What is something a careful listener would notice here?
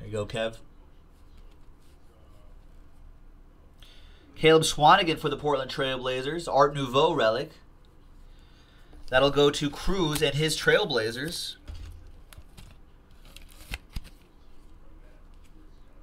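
Plastic card sleeves click and rustle in hands.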